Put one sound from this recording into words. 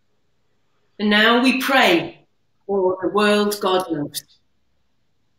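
An older woman speaks calmly, heard through an online call.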